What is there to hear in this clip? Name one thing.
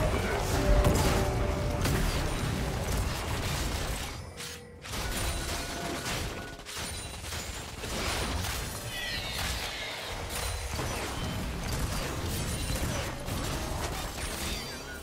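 Game spell effects whoosh, crackle and thud in a fast fight.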